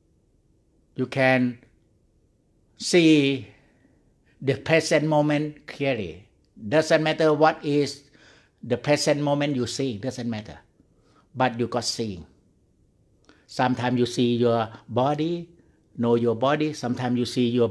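A middle-aged man speaks calmly into a microphone in an echoing room.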